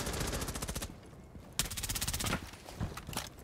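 A rifle fires rapid bursts up close.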